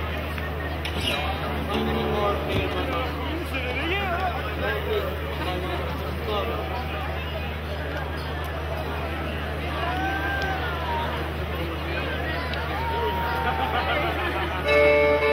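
An accordion plays a tune.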